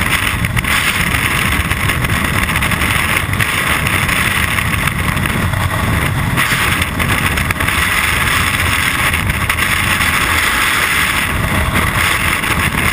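Loud wind roars and buffets steadily during freefall.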